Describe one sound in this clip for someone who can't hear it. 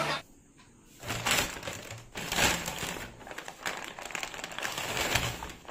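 A paper bag crinkles as a hand rummages inside.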